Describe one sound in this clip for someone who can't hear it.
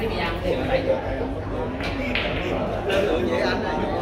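A billiard cue strikes a ball with a sharp click.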